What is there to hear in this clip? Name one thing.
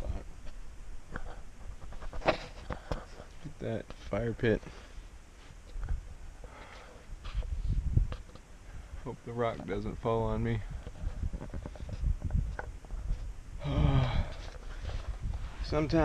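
A man talks calmly close to the microphone.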